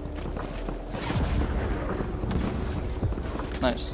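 Footsteps patter as a game character runs.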